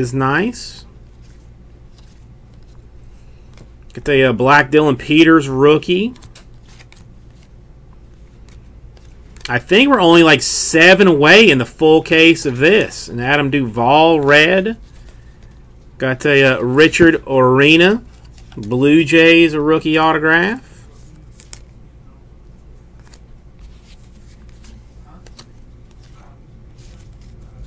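Trading cards rustle and slide against each other in a hand.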